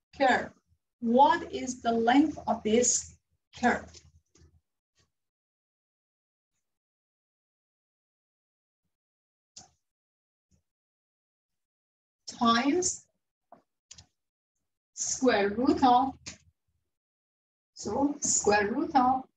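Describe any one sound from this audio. A young woman explains calmly, close by, in pauses.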